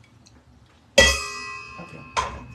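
A metal spoon clinks and rings against a metal pan.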